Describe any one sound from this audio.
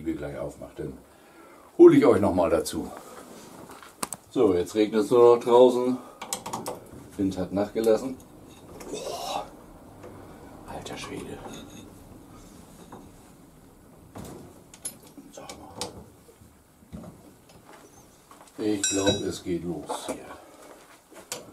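A middle-aged man talks calmly close by.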